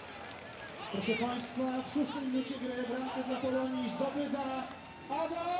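A crowd cheers loudly as a goal is scored.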